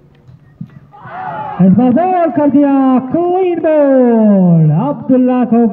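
Young men shout and cheer loudly in the open air.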